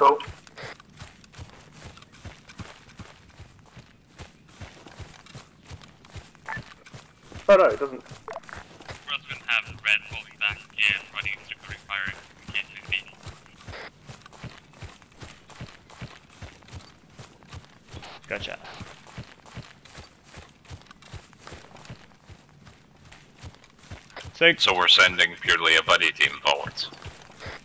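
Footsteps crunch steadily through undergrowth.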